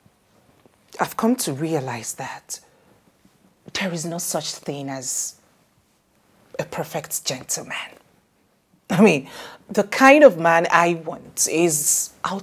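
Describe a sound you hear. A second young woman speaks calmly close by.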